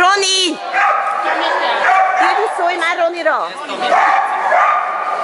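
A woman shouts commands to a dog, heard from across a large echoing hall.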